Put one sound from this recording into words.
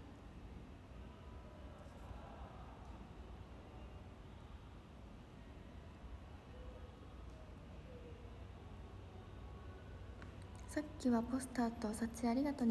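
A young woman speaks quietly and close to the microphone, then louder.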